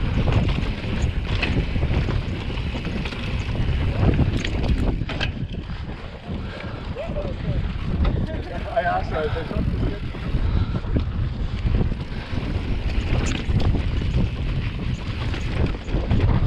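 A bicycle rattles and clanks over bumps.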